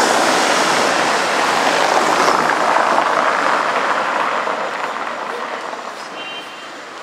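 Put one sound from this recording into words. A car drives past close by on a cobbled street and fades away.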